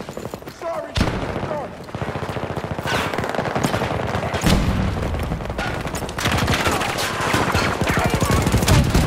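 Rapid gunfire rattles with loud bangs.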